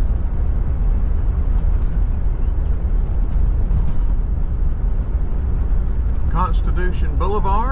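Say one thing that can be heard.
Wind rumbles steadily against a moving car.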